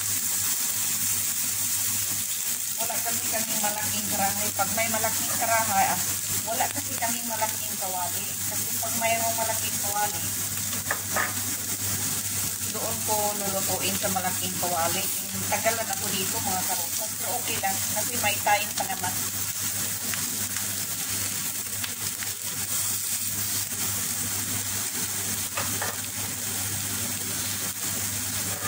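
Slices sizzle gently in a frying pan.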